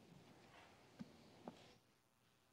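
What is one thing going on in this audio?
A book knocks softly on a wooden lectern.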